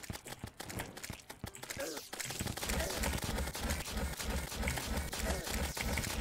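Quick game sound effects pop and zap as shots are fired.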